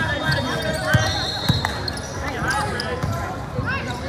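A basketball thumps as it bounces on a wooden floor.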